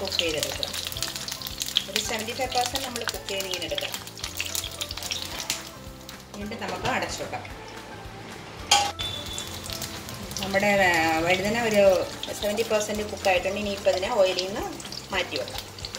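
Oil sizzles as aubergines fry in a pan.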